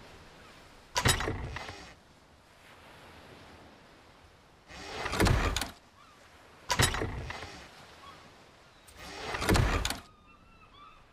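Wooden crate lids thump open and shut.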